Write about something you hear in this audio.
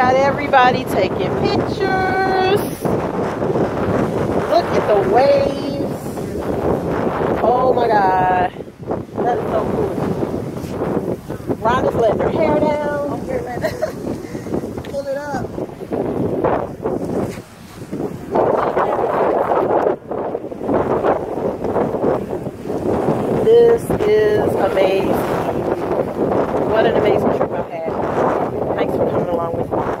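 Wind blows hard across the microphone.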